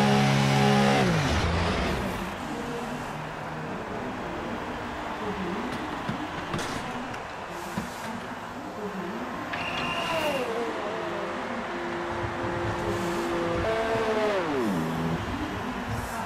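A race car engine revs up sharply and quickly falls back.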